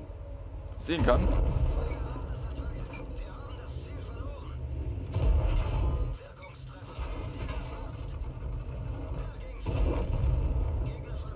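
Explosions burst nearby.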